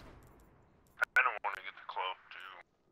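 A man talks excitedly into a microphone, close by.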